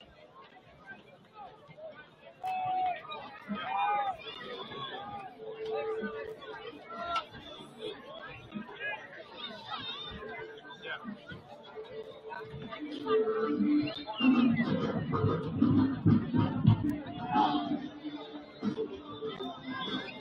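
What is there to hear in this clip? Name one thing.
A crowd of spectators chatters and cheers outdoors across a stadium.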